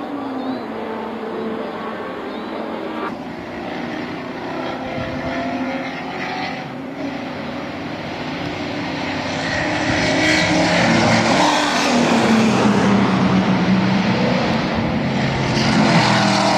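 Racing car engines roar and whine as they pass through a bend.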